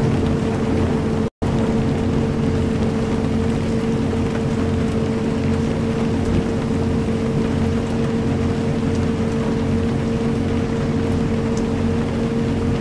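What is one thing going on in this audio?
Rain patters steadily on a windscreen.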